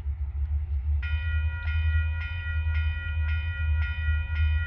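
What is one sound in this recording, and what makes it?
A diesel locomotive horn blows in the distance.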